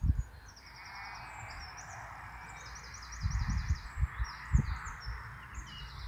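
A flock of sheep bleats nearby.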